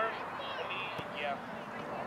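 A soccer ball thuds off a foot.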